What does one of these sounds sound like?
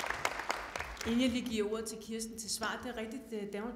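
A woman speaks with animation into a microphone.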